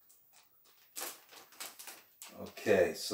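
Stiff packaging rustles and crinkles in a man's hands.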